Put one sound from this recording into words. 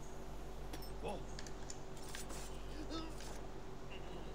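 Swords clash in a fight.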